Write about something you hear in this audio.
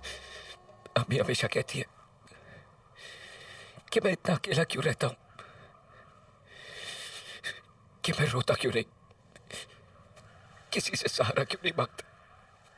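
A man speaks in a strained, sorrowful voice.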